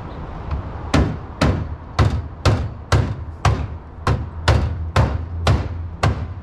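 Sharp knocks strike the metal of a car in a quick, steady series.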